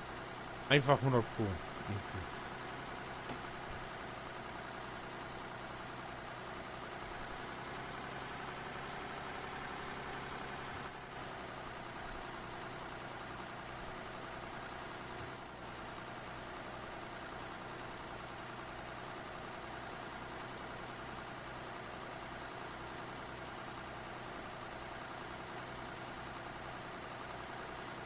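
A tractor engine chugs steadily.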